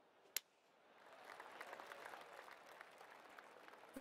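A crowd claps and cheers.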